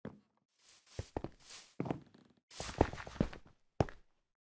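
Sword blows land with short, dull thuds.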